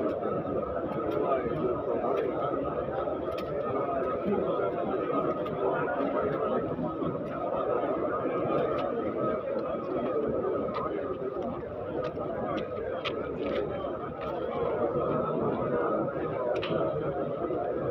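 A crowd of men murmurs and talks close by.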